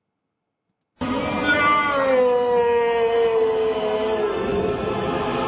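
A recorded man's voice wails a long, falling cry from a computer speaker.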